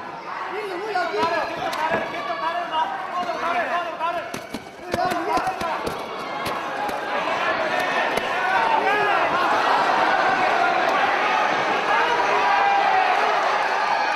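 Boxing gloves thud against bodies in quick blows.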